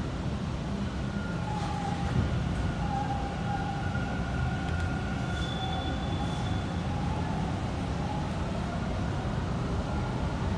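Train wheels squeal faintly against the rails.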